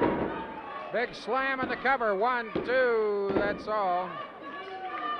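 Spectators cheer and yell loudly.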